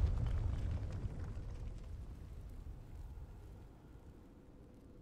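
An explosion booms and a low rumble slowly fades.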